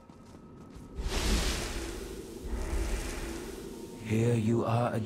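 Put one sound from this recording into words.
A magical portal whooshes loudly.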